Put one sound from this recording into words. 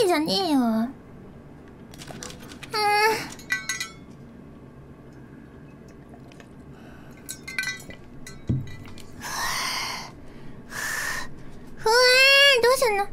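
A young woman exclaims and whines with animation through a microphone.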